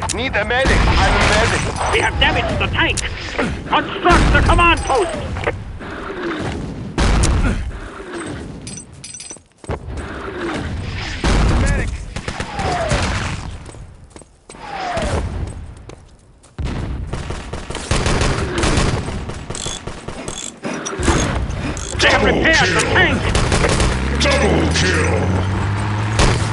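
Explosions boom nearby, one after another.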